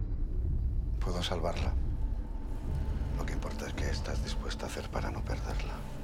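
A man speaks in a low, quiet voice, close by.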